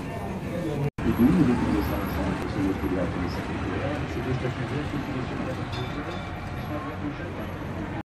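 A small road train rumbles slowly past over cobblestones.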